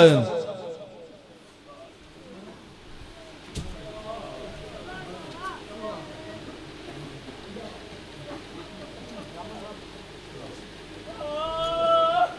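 A crowd of men talks and calls out nearby.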